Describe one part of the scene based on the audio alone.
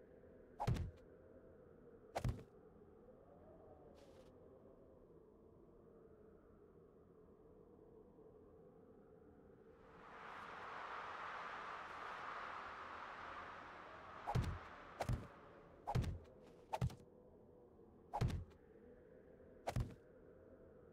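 Wooden blocks thud as they are placed one after another.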